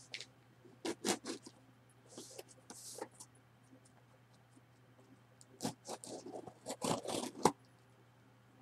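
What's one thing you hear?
Scissors slice through packing tape on a cardboard box.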